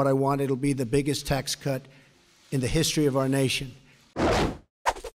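An elderly man speaks forcefully into a microphone.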